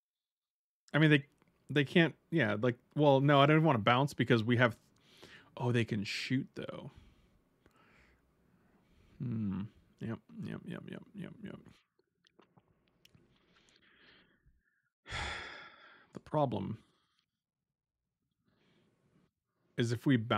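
A middle-aged man talks with animation into a close microphone.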